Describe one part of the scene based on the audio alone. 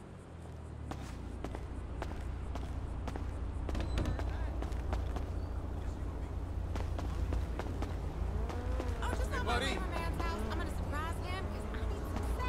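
Cars drive past on a nearby street with a low rumble.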